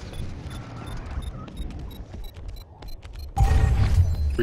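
Footsteps tread steadily across the ground.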